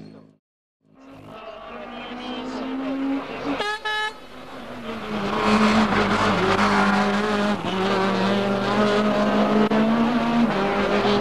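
Race car engines roar past at speed.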